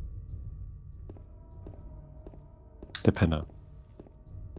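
Slow footsteps tap on a hard floor.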